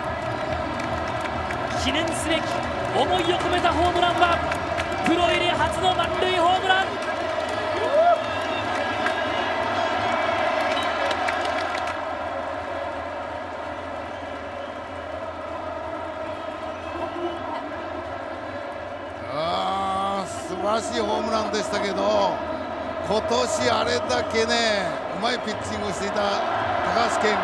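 A large crowd cheers and roars in a big echoing stadium.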